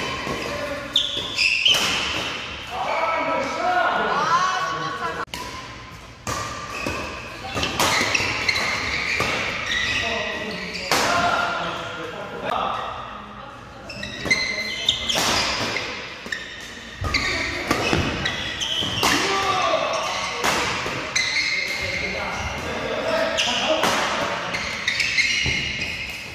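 Rackets hit a shuttlecock with sharp smacks in a large echoing hall.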